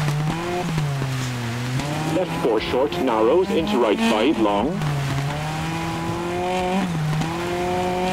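A rally car engine roars and revs up and down through gear changes.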